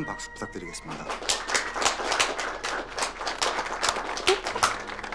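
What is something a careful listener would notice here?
A small crowd of guests applauds.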